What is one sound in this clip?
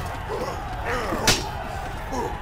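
A bow twangs as an arrow is loosed.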